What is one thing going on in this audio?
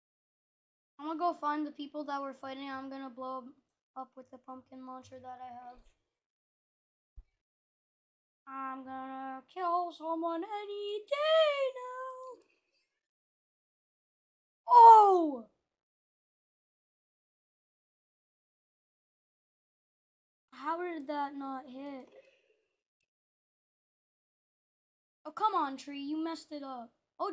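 A young woman talks with animation into a microphone, in bursts.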